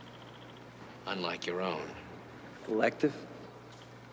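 A middle-aged man speaks in a low, serious voice.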